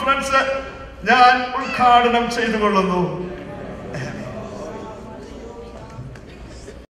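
A man speaks loudly and fervently through a microphone in an echoing hall.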